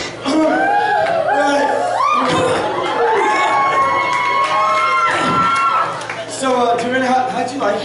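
A man sings loudly and theatrically through a microphone in an echoing hall.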